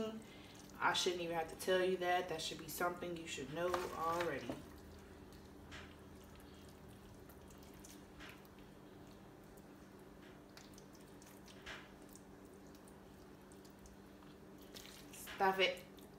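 A spoon scrapes and taps as filling is spooned into a pepper.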